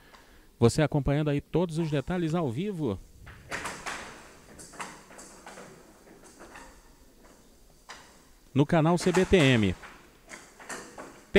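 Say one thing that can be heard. A ball rolls and rattles across a table.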